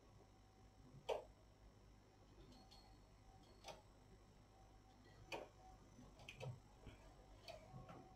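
Small metal needles click softly as yarn is worked on a knitting machine.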